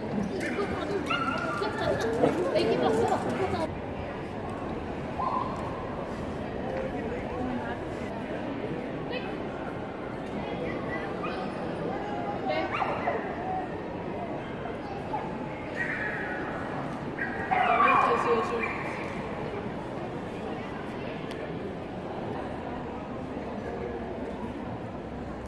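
People's voices murmur in a large echoing hall.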